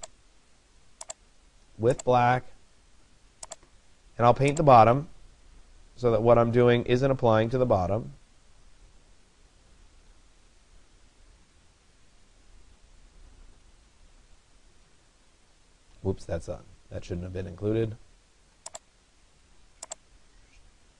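A computer mouse clicks a few times.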